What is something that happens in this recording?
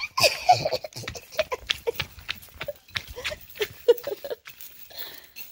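A dog's claws tap on paving stones.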